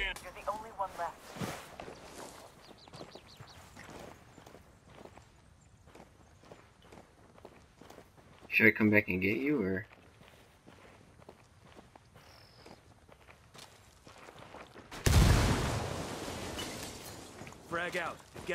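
Footsteps crunch on gravel and dirt.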